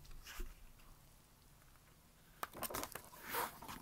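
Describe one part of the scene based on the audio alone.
A paper page rustles as a book cover is turned.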